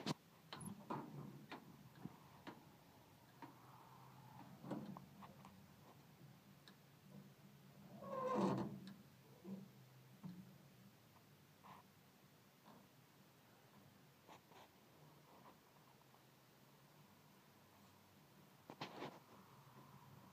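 Hands knock and rub against old metal close by.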